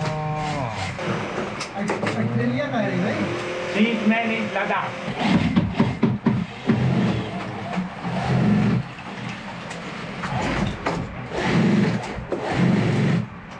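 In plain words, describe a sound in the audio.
Sewing machines whir and rattle steadily.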